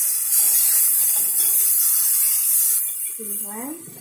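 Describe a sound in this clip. Food sizzles loudly in a hot frying pan.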